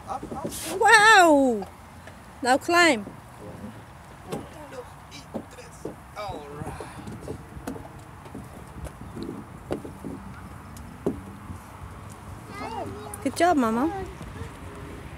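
A young girl squeals and calls out playfully, close by.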